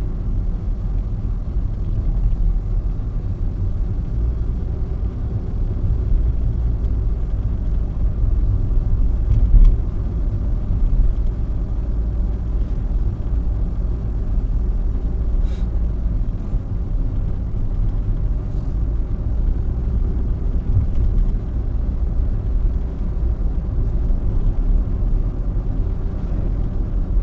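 Tyres roll with a low rumble on asphalt.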